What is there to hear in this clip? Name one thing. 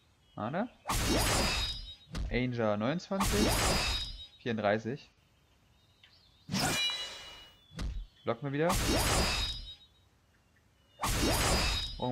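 Swords swing and clash in bursts of whooshing strikes.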